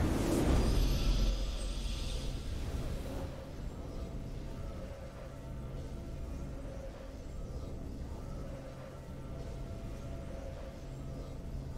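A triumphant fanfare plays softly.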